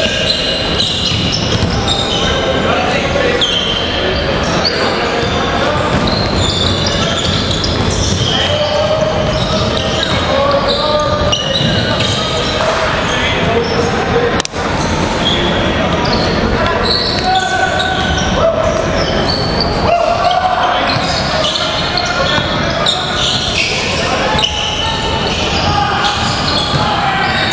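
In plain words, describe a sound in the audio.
Basketball shoes squeak on a hardwood court.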